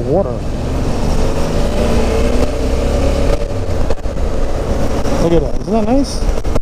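A motorcycle engine hums steadily as it rides along a road.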